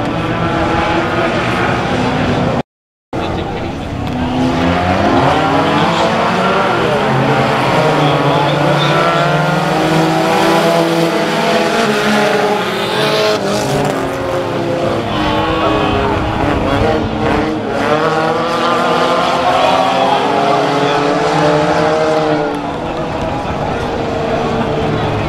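Race car engines roar and rev loudly as the cars speed around the track.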